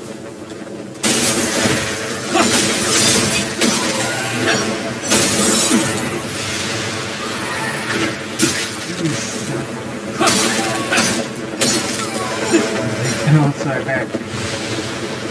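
Heavy blows thud and whoosh in quick bursts.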